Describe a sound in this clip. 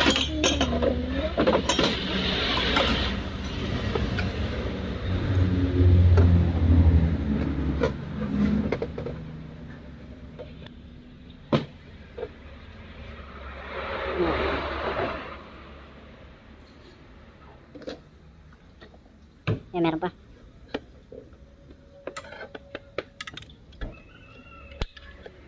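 Metal parts clink and clatter as they are handled.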